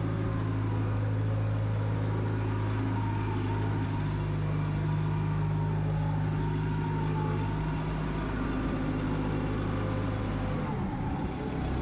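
A heavy diesel engine rumbles steadily nearby, then shuts down.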